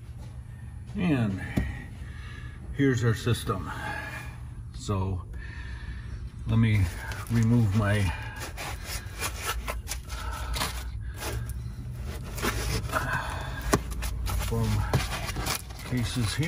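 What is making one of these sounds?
A middle-aged man talks calmly close by.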